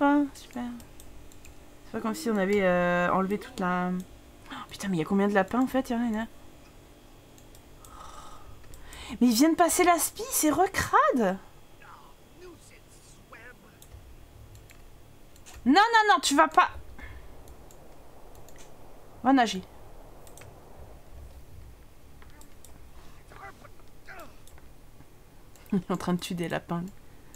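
A young woman talks with animation close to a microphone, in bursts with pauses.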